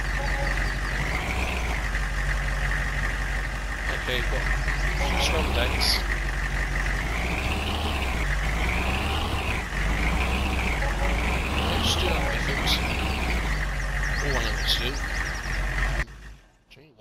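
A truck engine idles and revs up and down.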